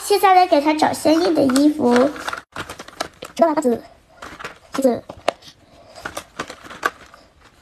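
Loose cardboard pieces rattle and shuffle as a hand rummages through them.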